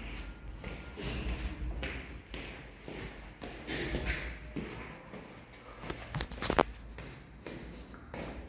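Footsteps go down concrete stairs.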